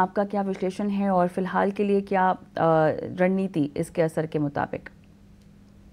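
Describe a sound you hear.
A woman speaks clearly and briskly into a microphone.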